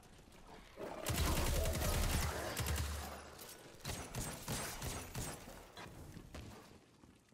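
Gunfire and electric crackling burst out loudly in rapid bursts.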